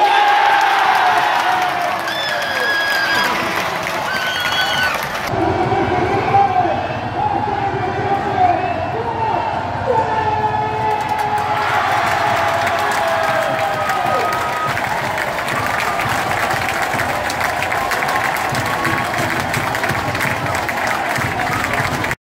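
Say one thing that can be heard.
A large crowd cheers loudly in an open stadium.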